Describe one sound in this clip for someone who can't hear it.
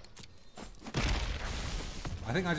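A game's magic effect bursts with a bright whoosh.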